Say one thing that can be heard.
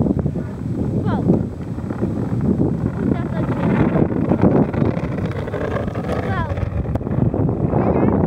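An ice yacht's runners scrape and rumble over the ice as it speeds past.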